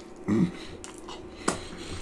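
A man chews food with wet smacking sounds.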